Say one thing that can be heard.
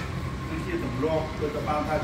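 A man and a woman chat quietly nearby.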